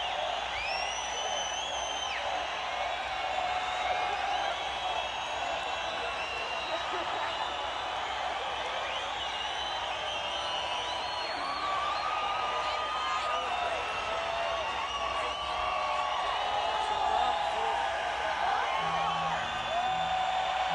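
A large crowd chatters and cheers in a big echoing hall.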